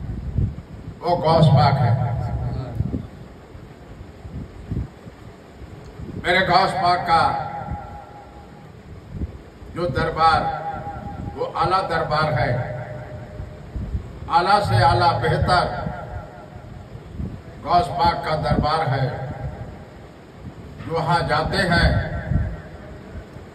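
An elderly man chants in phrases into a microphone, with pauses between them.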